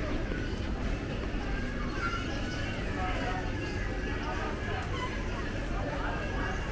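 Distant voices murmur in a busy street.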